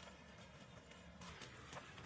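Dry soil pours and patters onto the ground.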